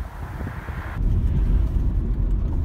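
A car drives along a road with a steady road rumble.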